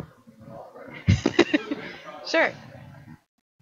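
A woman laughs into a microphone.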